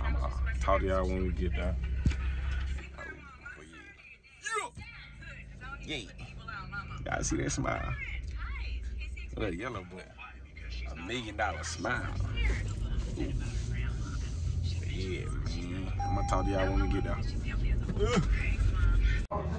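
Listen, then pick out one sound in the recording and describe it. A young man talks animatedly close to the microphone.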